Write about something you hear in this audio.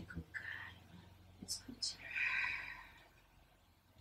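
A woman speaks softly up close.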